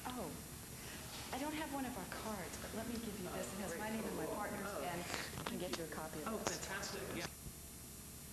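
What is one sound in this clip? A man speaks to a small group.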